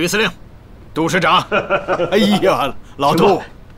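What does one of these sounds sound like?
A man speaks warmly and with animation, close by.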